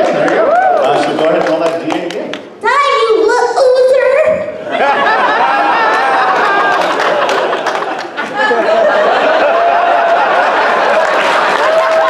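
A young woman talks with animation through a microphone in a large echoing hall.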